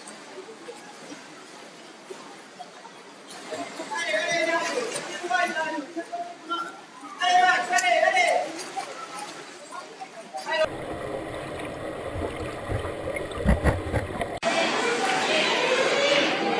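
A swimmer splashes through the water.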